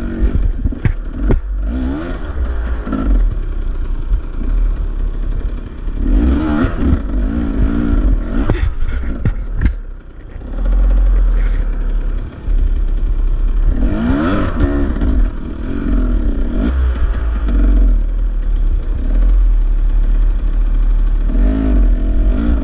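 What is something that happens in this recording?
A dirt bike engine idles and revs up close.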